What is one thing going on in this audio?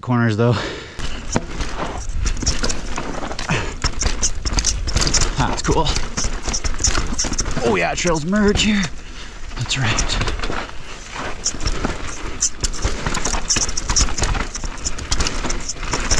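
Bike tyres crunch and rattle over a rough dirt trail.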